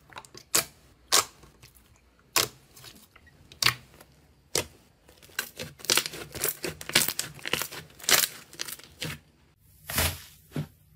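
Hands squish and squeeze soft slime, with wet popping and crackling.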